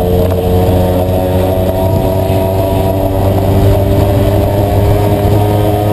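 A motorcycle engine hums steadily while riding at speed.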